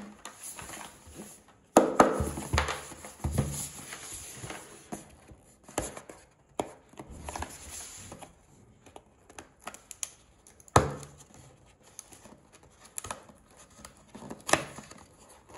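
Cardboard scrapes and rustles under fingers.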